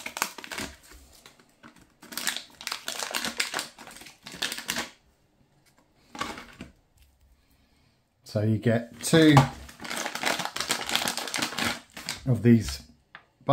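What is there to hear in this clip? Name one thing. A plastic food packet crinkles and rustles as hands tear it open.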